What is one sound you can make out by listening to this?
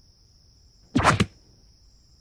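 A hand grabs a wrist with a sudden smack.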